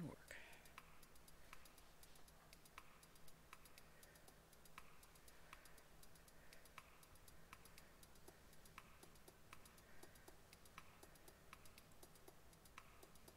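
A spinning wheel clicks steadily as a treadle turns.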